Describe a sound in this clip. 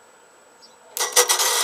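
A small petrol engine cranks and starts up loudly.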